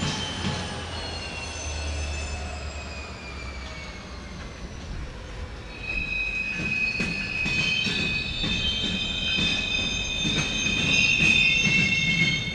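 Steel wheels squeal against the rails.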